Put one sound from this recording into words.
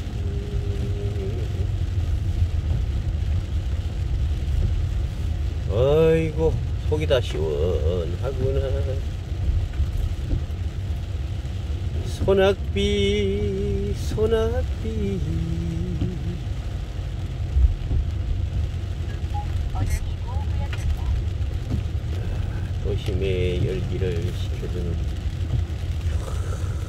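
A car drives steadily over a wet road with a low rumble.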